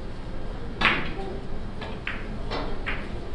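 Billiard balls knock against each other.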